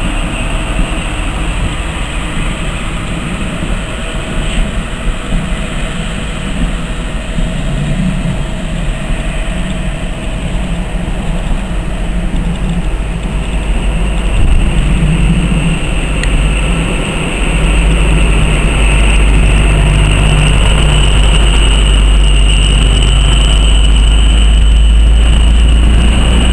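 A diesel train engine rumbles steadily as the train rolls slowly past close by.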